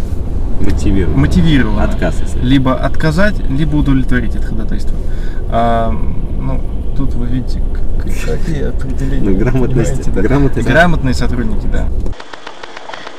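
A young man talks with animation close by inside a car.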